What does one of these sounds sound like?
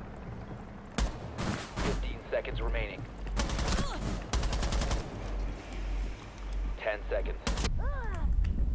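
Rapid gunfire bursts ring out in short volleys.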